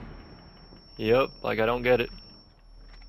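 A stun grenade bursts with a loud bang.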